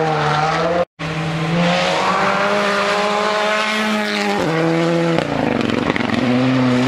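A second rally car engine screams and shifts gears as the car races by.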